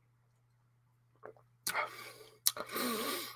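A man sips a drink and swallows.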